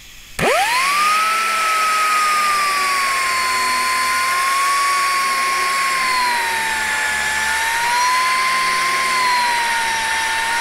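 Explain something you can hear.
An angle grinder grinds against metal.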